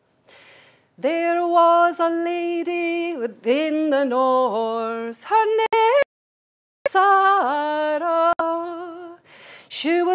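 A woman sings a slow, sustained melody through a microphone.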